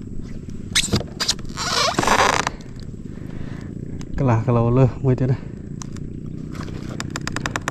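Water laps softly against a small boat.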